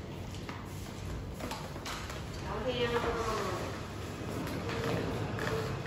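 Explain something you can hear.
Plastic scooter wheels roll and rattle over a hard floor.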